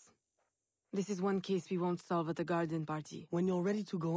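A woman answers calmly, close by.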